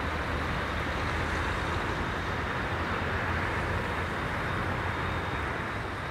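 Jet engines roar steadily as an airliner taxis in the distance.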